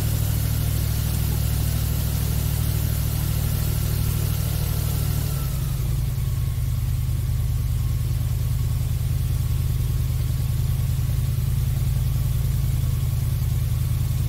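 An airboat's engine and propeller roar loudly and steadily, changing pitch slightly partway through.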